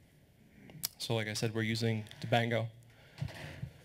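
A man speaks calmly into a microphone, heard through loudspeakers in a large hall.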